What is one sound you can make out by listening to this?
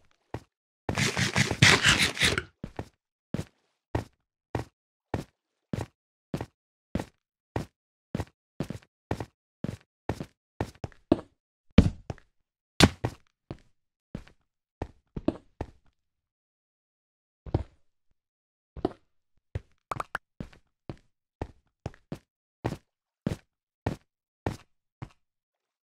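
Footsteps tap on stone at a steady pace.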